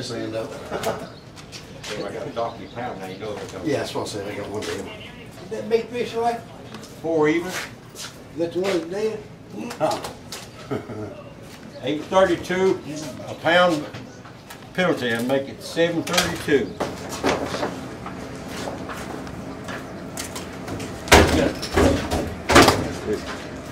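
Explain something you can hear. Fish thump and slap into a plastic basket.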